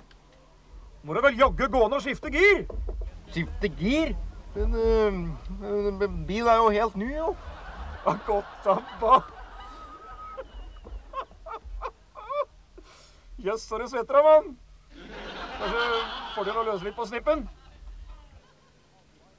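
A middle-aged man talks with animation nearby.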